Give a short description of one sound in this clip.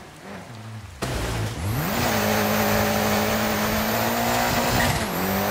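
A rally car engine revs loudly up close.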